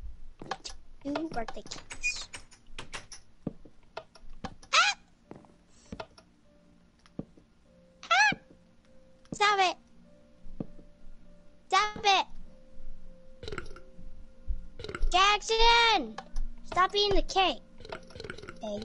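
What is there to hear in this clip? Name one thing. A child talks with animation, close to a headset microphone.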